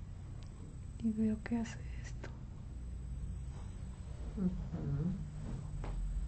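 A middle-aged woman moans softly close by.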